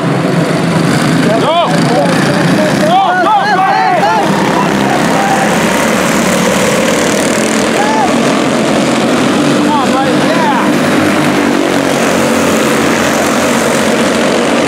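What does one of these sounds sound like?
Many small kart engines buzz and whine loudly as the karts race past.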